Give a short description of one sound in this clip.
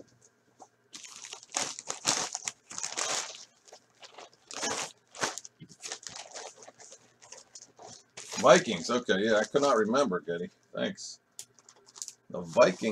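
Plastic wrapping crinkles and rustles in a man's hands.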